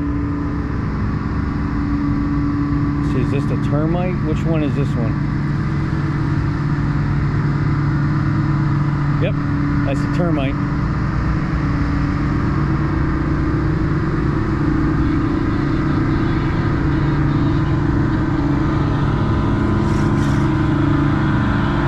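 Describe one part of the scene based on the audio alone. A boat's diesel engine rumbles with a steady, deep drone.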